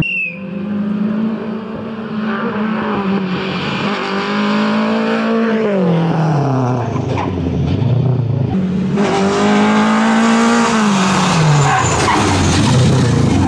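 A rally car engine roars close by, revving high and then dropping in pitch as the car passes.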